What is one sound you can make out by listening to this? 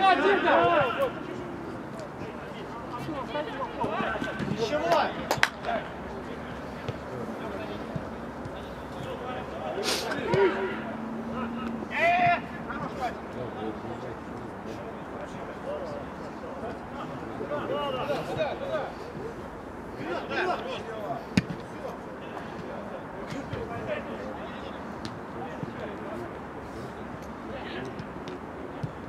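Men shout to each other across an open field outdoors.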